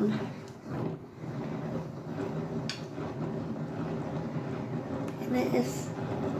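A hand-cranked yarn winder whirs and rattles steadily.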